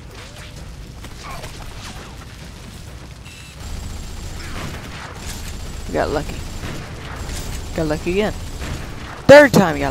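Gunfire cracks in bursts.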